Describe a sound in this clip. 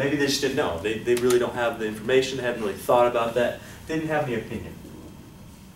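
A man speaks clearly and calmly, close by.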